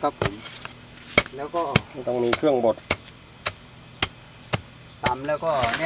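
A wooden pestle pounds steadily into a mortar with dull thuds.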